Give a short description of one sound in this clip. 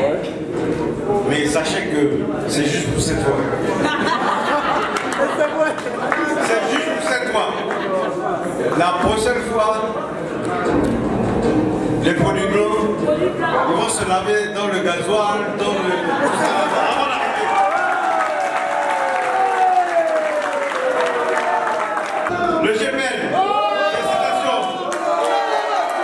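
A middle-aged man speaks with animation into a microphone, heard over loudspeakers in an echoing hall.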